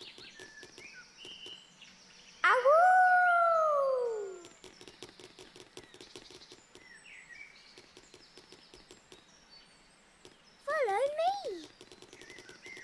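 Small footsteps patter on grass.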